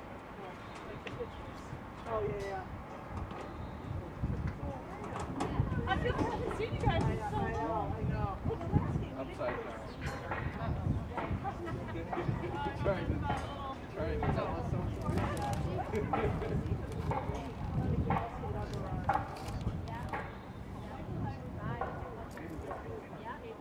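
Young women chat and call out in the open air.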